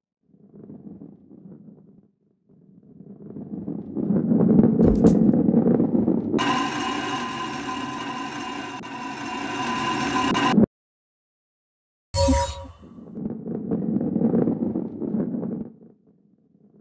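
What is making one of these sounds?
A ball rolls along a wooden track with a low rumble.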